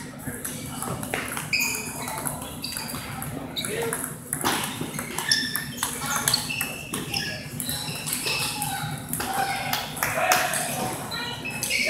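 Many people chatter in the background of a large hall.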